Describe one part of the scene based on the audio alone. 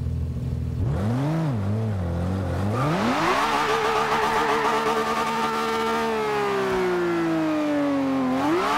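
A car engine revs up sharply and roars as the car speeds away.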